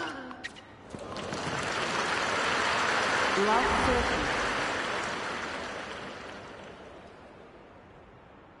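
A crowd cheers and applauds loudly, then fades.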